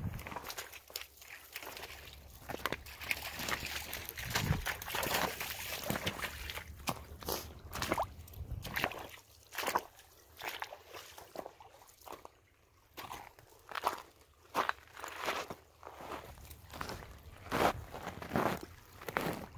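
Boots splash and slosh through a shallow stream.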